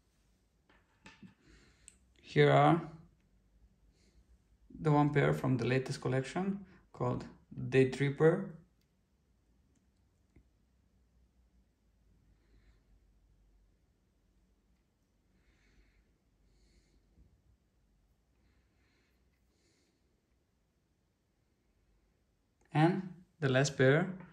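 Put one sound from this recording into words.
Sunglasses hinges click softly as the arms fold and unfold.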